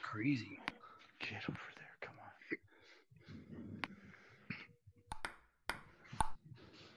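A ping-pong ball clicks sharply off paddles and a table.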